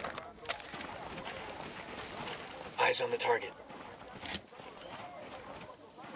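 Tall grass rustles as someone crawls through it.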